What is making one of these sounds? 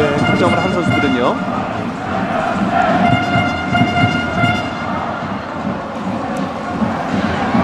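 A large stadium crowd cheers and chants.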